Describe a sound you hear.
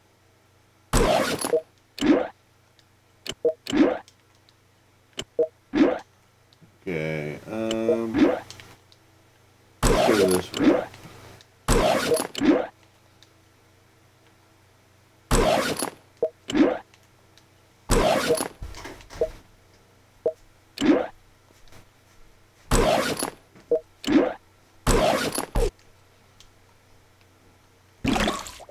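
Short electronic menu sounds chime and swish as game menus open and close.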